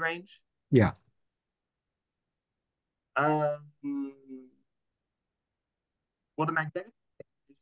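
A young man speaks calmly through an online call, with pauses.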